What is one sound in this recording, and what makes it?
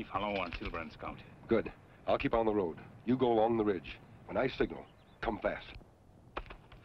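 An elderly man speaks firmly and gruffly, close by.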